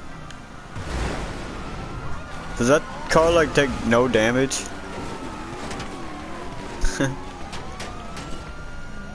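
Police sirens wail and rise and fall.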